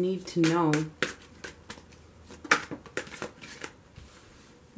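Cards tap and click as they are shuffled and laid down on a table.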